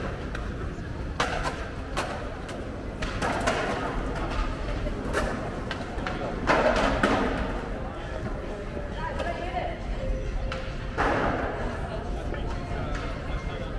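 Skateboard wheels roll and clatter on concrete in a large echoing space.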